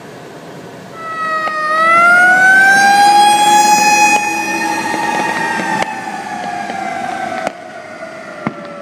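A fire engine siren wails loudly, rising and then slowly falling away.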